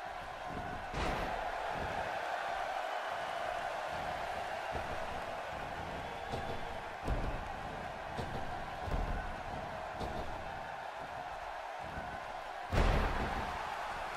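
Heavy thuds of bodies slamming onto a wrestling ring mat boom out.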